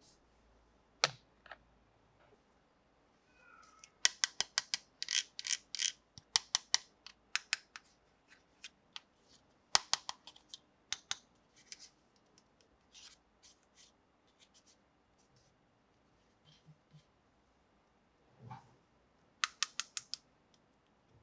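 Plastic toy parts click and tap close by.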